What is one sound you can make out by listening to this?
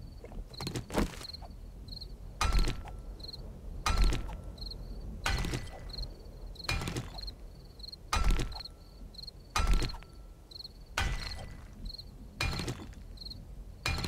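A pickaxe strikes stone blocks again and again with heavy thuds.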